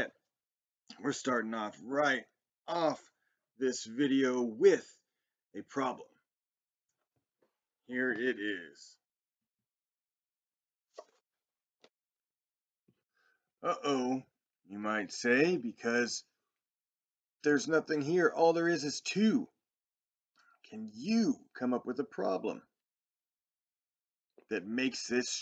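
A man talks with animation, close to a microphone, in short bursts with pauses.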